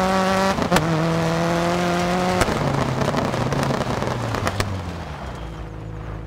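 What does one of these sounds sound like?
A rally car engine roars and shifts gears as the car accelerates.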